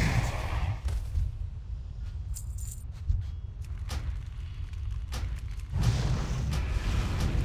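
Magic spells crackle and strike in a fantasy battle.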